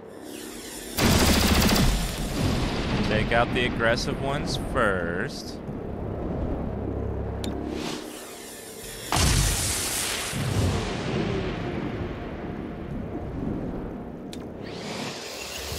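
Energy weapons fire in loud, crackling bursts.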